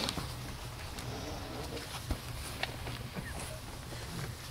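Lowering straps rub and creak as a wooden casket is set down.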